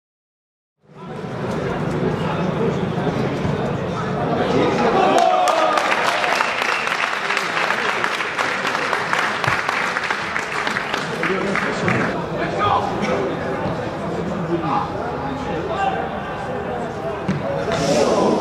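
Men shout to each other across an open, echoing stadium.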